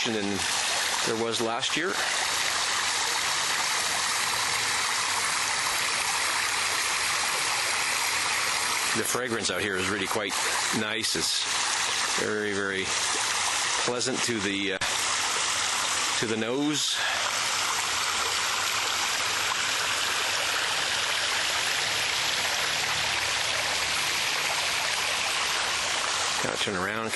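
Water trickles steadily over rocks into a small pool.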